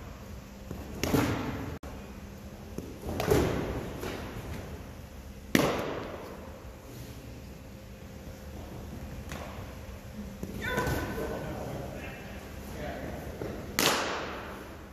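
A baseball smacks into a leather glove.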